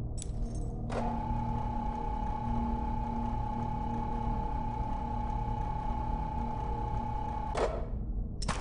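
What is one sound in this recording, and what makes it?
A lift hums steadily as it moves.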